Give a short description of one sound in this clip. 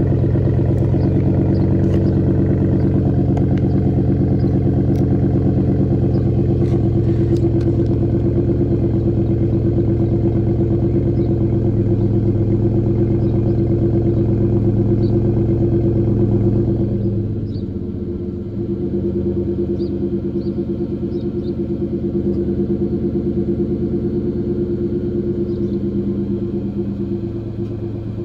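A truck engine idles with a deep, rumbling exhaust close by, then settles to a softer burble.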